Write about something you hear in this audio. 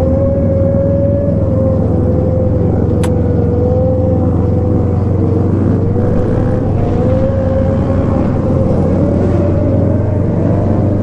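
A motorcycle engine drones steadily up close as the bike rides along.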